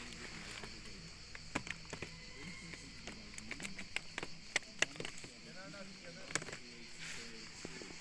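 Plastic crates knock and rattle against each other.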